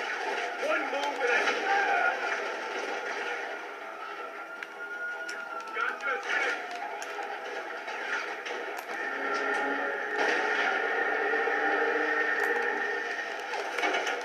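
Gunshots crack in rapid bursts through a television speaker.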